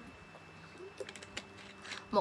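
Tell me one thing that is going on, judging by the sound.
A plastic bottle crinkles in a hand.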